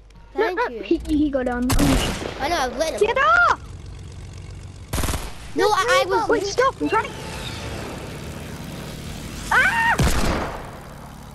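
A propeller plane engine drones.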